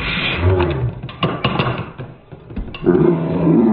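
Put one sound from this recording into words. Spinning tops clatter and scrape against each other in a plastic arena.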